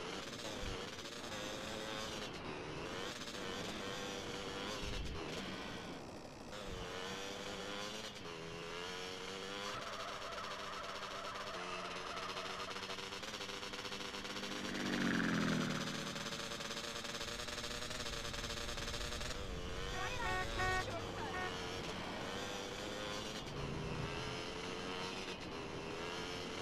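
A motorbike engine drones steadily.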